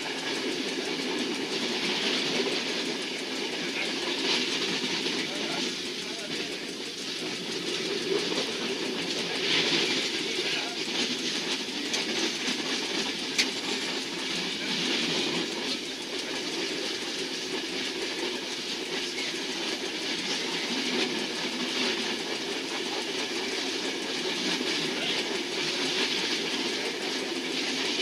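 Train wheels clatter over rail joints and points.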